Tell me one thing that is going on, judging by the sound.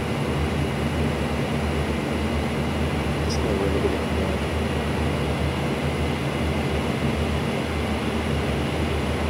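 A propeller aircraft engine drones steadily and loudly.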